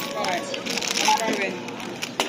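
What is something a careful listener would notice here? A self-checkout scanner gives a short beep.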